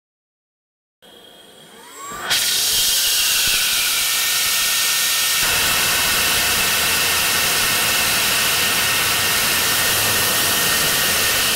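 A jet engine spools up and roars loudly at full thrust.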